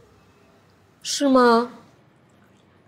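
A young woman asks a short question.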